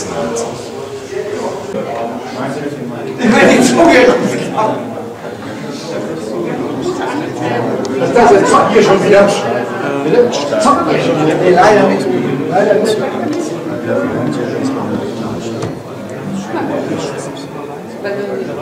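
Many people chatter at once in a room.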